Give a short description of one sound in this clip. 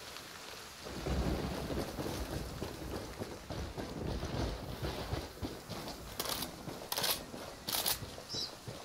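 Footsteps run on a dirt track.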